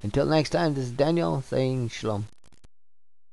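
A man speaks calmly and close through a headset microphone.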